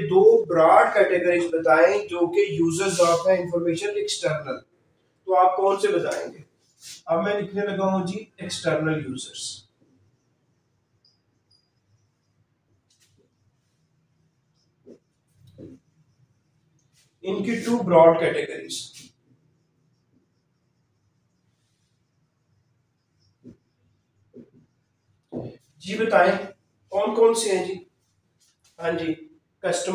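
A man speaks calmly and clearly, close by, in short bursts with pauses.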